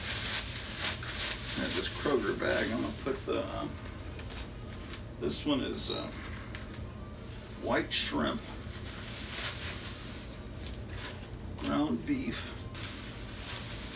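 Paper rustles and crinkles as it is unwrapped.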